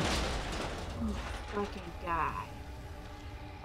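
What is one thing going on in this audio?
A large creature groans low and hoarsely.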